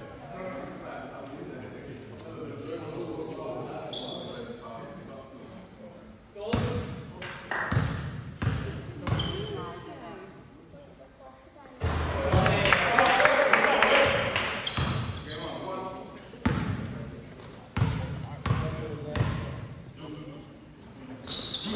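Players shout and call out in a large echoing gym hall.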